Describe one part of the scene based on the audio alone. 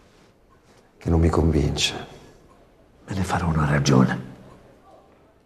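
An older man speaks earnestly nearby.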